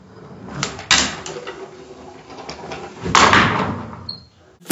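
A handboard grinds along a metal rail.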